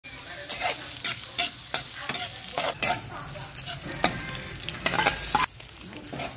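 Food sizzles in hot oil.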